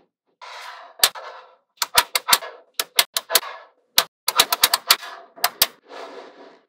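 Small metal magnetic balls click and snap together.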